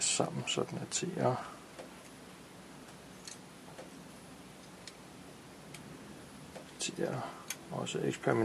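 A small circuit board module clicks faintly as fingers handle it.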